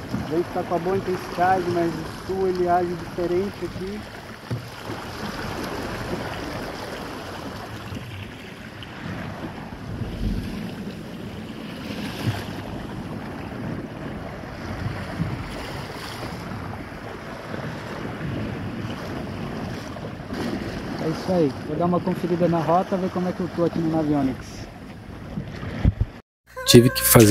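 Water splashes and rushes against the hull of a small boat.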